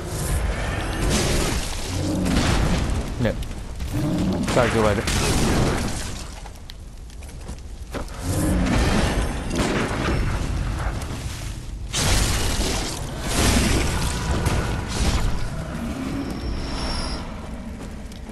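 Blades slash and strike with sharp hits.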